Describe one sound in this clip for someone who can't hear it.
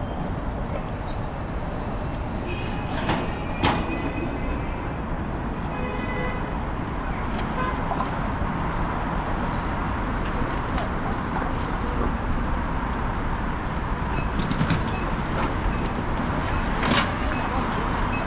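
Electric scooters and motorbikes hum past close by.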